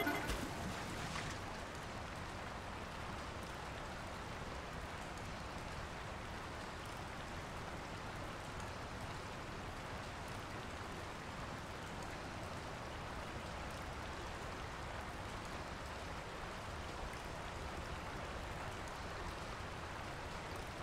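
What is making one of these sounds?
A small boat's engine hums steadily.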